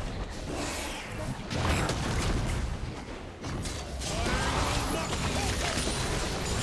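Magic blasts and hits crackle and thud in a fast video game fight.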